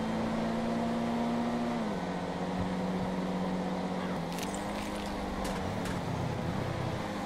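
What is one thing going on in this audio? A car engine hums steadily, dropping in pitch as it shifts gear.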